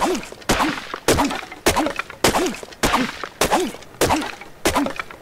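A hatchet chops into a tree trunk with sharp, steady blows.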